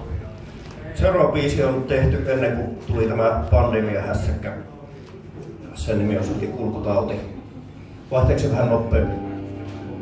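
A man speaks into a microphone, heard through loudspeakers in a hall.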